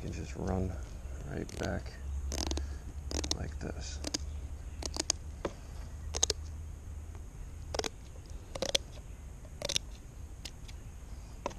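Scissors snip through fish bones with sharp crunching clicks.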